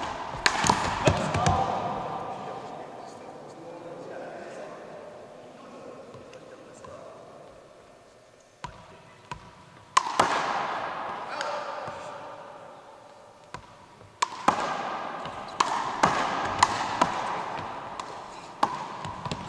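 A basketball bounces on a hardwood floor with a booming echo.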